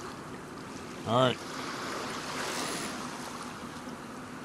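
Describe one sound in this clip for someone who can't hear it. A fishing line whizzes out as a rod is cast.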